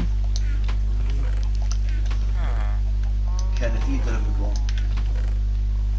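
Soft menu clicks tick as items are selected.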